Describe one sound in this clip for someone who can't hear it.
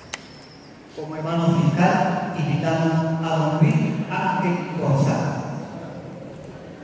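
A man speaks into a microphone through loudspeakers in an echoing hall.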